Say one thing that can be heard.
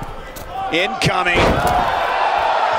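A body thuds heavily onto a wrestling mat.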